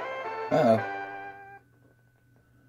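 Bleepy video game music plays and stops.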